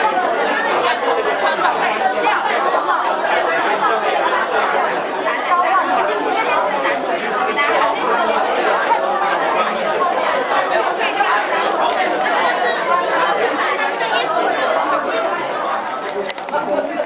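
A crowd of men and women chatters indoors, with many voices overlapping.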